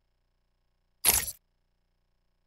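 A short menu swoosh sounds as a selection changes.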